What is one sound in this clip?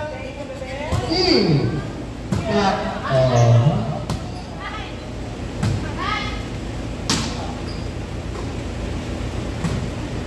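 A volleyball thumps as players hit it, echoing in a large hall.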